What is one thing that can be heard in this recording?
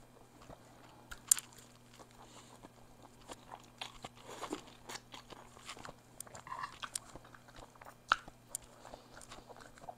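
A woman chews and slurps noodles close to a microphone.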